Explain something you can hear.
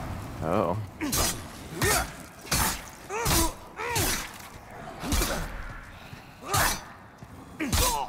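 Blades clash and strike in quick, repeated blows.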